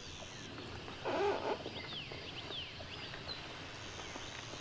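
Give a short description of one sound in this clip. A hard-shell rooftop tent pops open, its fabric rustling as it unfolds.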